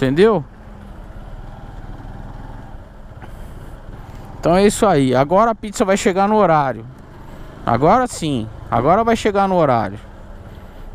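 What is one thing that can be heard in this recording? A motorcycle engine revs up and down sharply several times.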